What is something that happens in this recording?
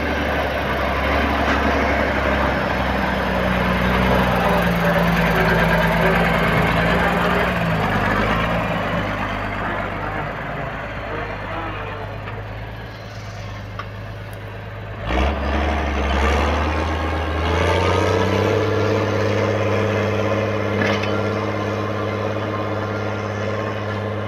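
A tractor diesel engine rumbles steadily close by.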